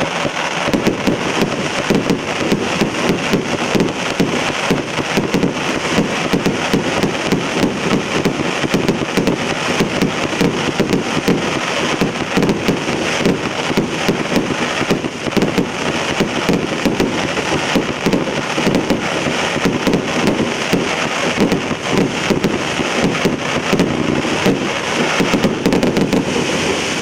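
A firework cake fires shots in rapid succession.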